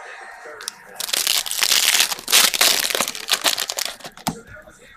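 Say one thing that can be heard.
Foil wrapping crinkles and tears loudly.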